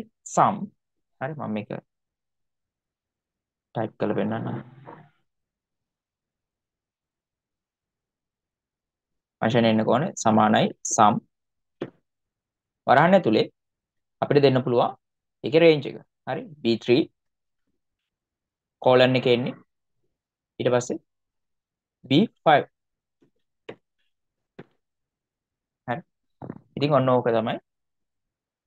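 A young man speaks calmly into a microphone, in short bursts with pauses.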